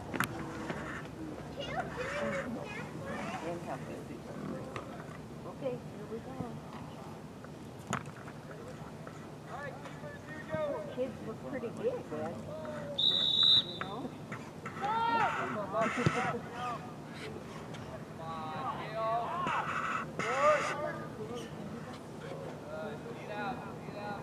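Teenage boys shout to each other across an open outdoor field.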